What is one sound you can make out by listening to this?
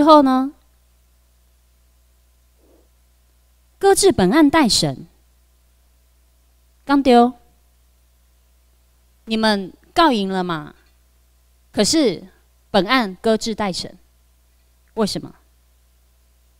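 A young woman speaks into a microphone in short phrases with pauses, heard through a loudspeaker.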